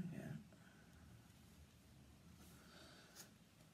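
Cloth rustles softly as it is lifted and handled.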